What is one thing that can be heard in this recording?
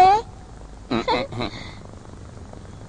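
A young woman speaks brightly and briefly, close by.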